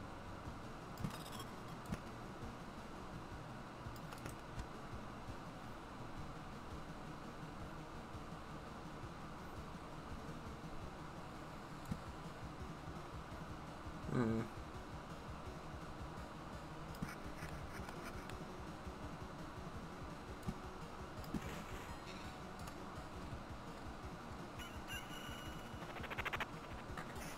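Short electronic clicks sound now and then.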